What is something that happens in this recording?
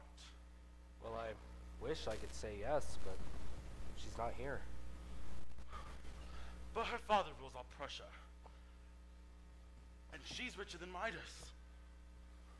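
Young actors speak lines on a stage in a large echoing hall.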